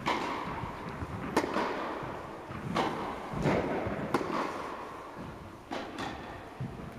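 Tennis shoes squeak on the court.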